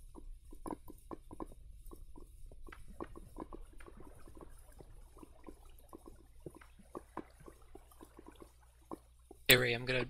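Blocks are set down with soft clicking taps.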